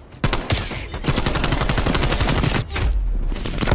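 An automatic rifle fires in a rapid burst.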